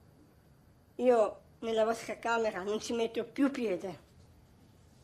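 A young girl speaks in a tense voice nearby.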